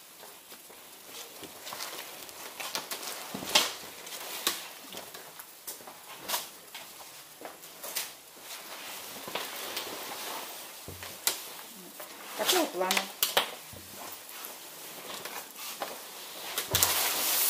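Clothes rustle and flap as they are handled and moved.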